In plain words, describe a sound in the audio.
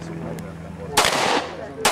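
A pistol fires a sharp shot outdoors.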